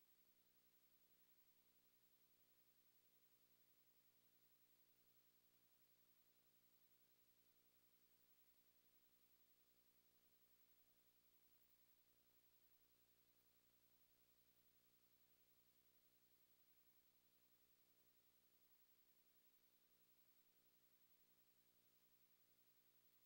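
Television static hisses steadily and faintly.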